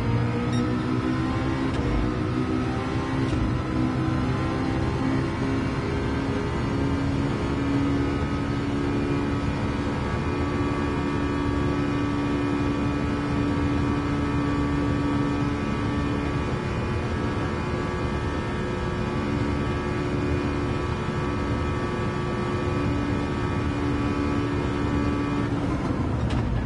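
A racing car engine roars, climbing in pitch through quick gear changes and then holding a steady high whine at full speed.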